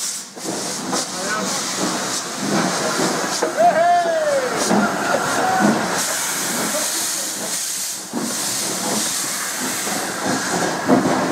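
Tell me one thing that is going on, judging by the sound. A steam locomotive chuffs slowly along the track.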